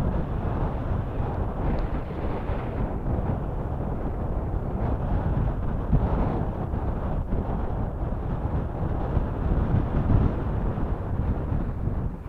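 Strong wind blusters against the microphone outdoors.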